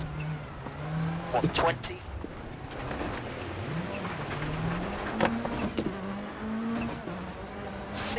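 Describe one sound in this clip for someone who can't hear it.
A rally car engine hums and revs up and down as gears change.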